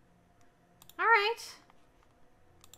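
A cartoon frog croaks in warbling, rising calls.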